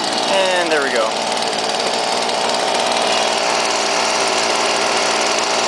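A leaf blower engine runs with a loud, steady roar.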